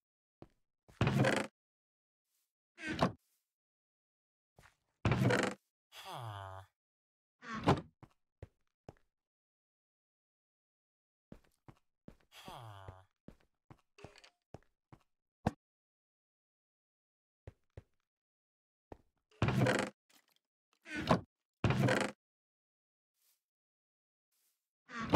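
A wooden chest creaks open and shuts again.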